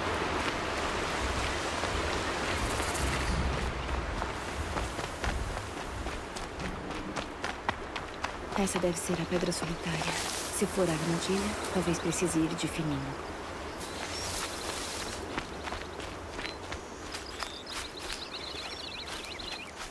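Footsteps run over dry ground and rustle through tall grass.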